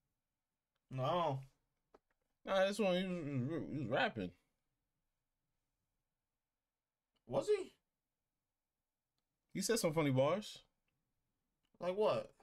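Another young man talks calmly, close by.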